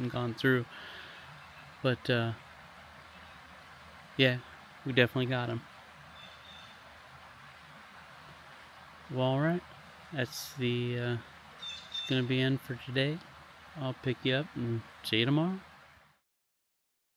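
A middle-aged man talks calmly and close to the microphone, in short bursts.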